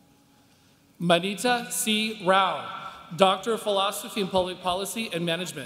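A man reads out over a loudspeaker in a large hall.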